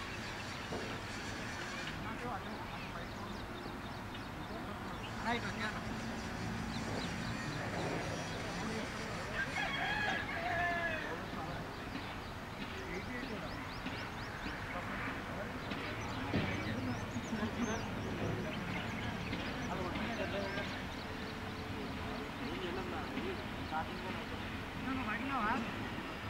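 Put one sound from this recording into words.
Men call out and talk across an open field outdoors.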